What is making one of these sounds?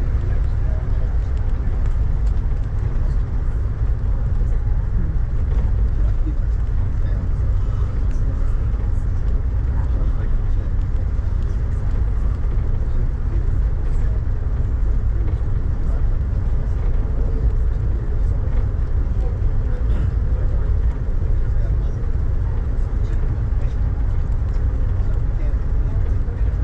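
Raindrops tap lightly on a window.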